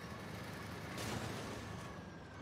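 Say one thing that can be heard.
A loud metal crash sounds once.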